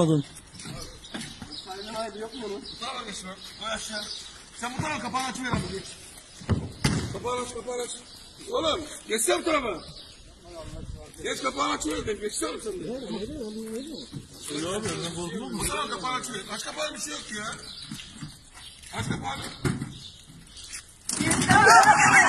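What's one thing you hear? Several men talk to each other nearby outdoors.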